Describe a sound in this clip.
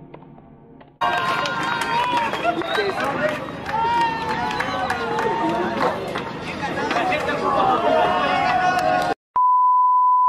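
A group of young men laugh and cheer close by.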